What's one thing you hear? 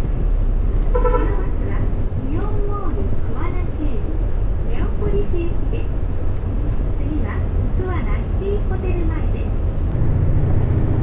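A bus engine rumbles nearby as a bus pulls past.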